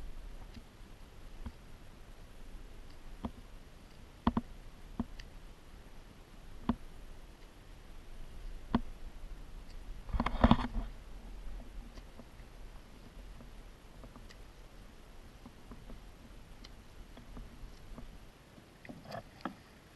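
Water laps against a kayak's hull.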